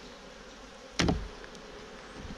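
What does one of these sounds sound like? A metal tool knocks against a wooden hive frame.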